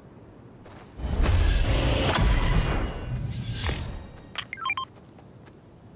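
A bright game jingle plays loudly.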